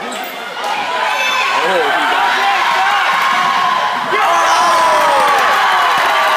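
A crowd cheers loudly.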